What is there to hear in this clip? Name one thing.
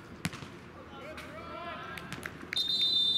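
Young men shout to each other across an outdoor court.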